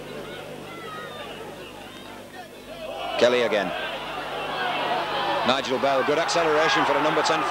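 A large crowd in a stadium cheers and roars, growing louder.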